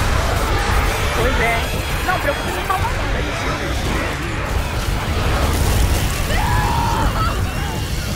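A horde of creatures snarls and screeches.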